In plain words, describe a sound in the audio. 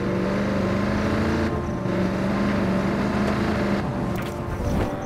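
An armoured military truck's engine roars as it drives fast.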